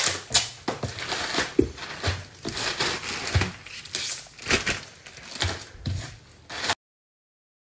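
Plastic packets rustle and crinkle as they are handled.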